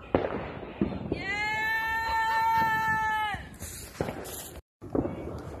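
Fireworks bang and crackle outdoors.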